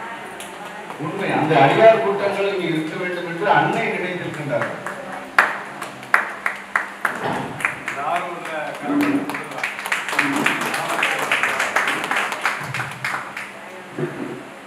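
A man speaks through a microphone with animation in an echoing hall.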